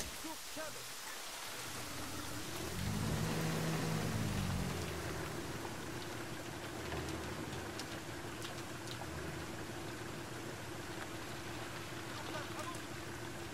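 Water splashes and sloshes as a swimmer moves through it.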